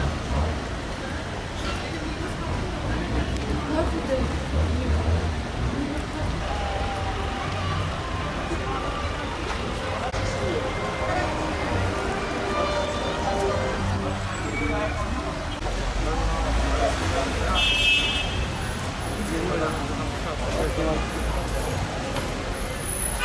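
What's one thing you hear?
A busy street crowd murmurs nearby.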